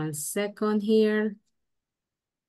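A woman speaks briefly over an online call.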